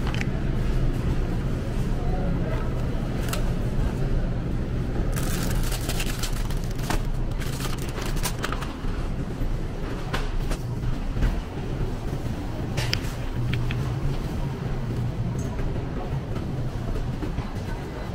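A low steady hum fills a large indoor space.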